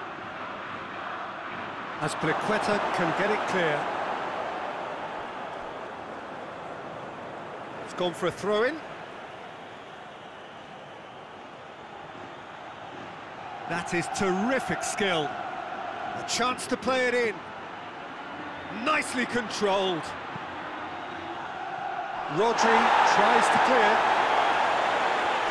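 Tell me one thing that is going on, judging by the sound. A stadium crowd roars steadily, swelling loudly near the end.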